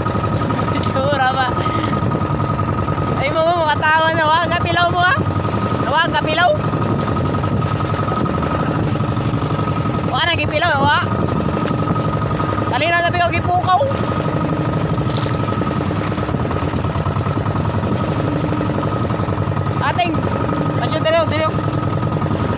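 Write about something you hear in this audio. A man calls out loudly over the engine.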